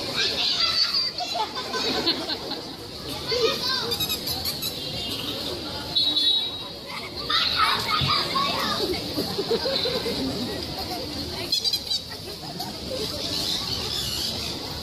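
A crowd of people chatters nearby outdoors on a busy street.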